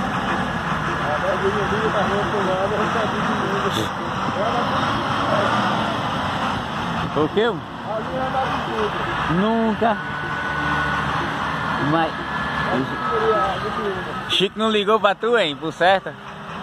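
A tractor engine rumbles in the distance.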